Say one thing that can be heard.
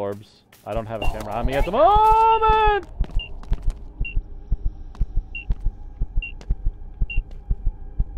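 An electronic meter beeps in short, regular high tones.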